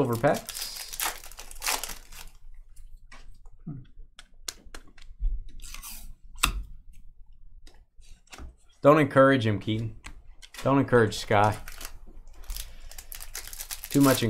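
Foil card wrappers crinkle as they are torn open.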